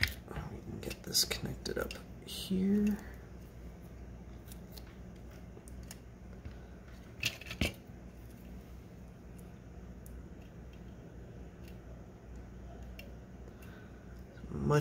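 Small plastic parts click and tap together as hands handle them.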